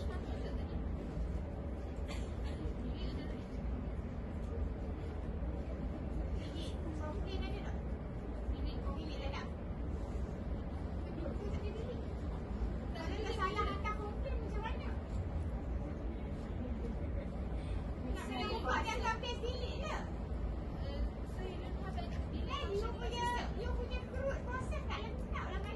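A young woman speaks at a distance in a large echoing hall.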